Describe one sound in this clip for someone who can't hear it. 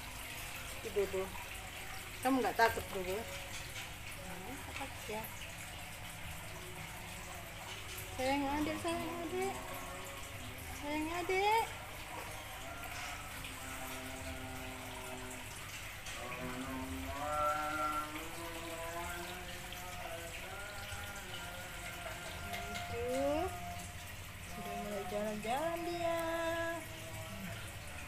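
Small kittens meow with high, thin cries, again and again.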